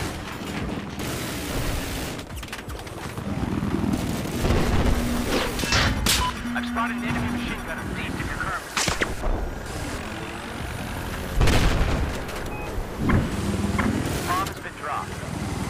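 A young man talks into a headset microphone with animation.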